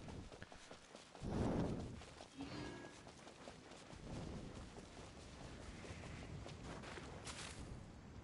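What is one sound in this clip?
Footsteps patter through grass.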